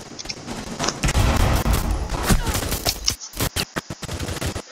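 Rapid gunfire rings out close by.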